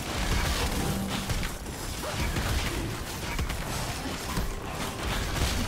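Magic spells whoosh and crackle in a fast battle.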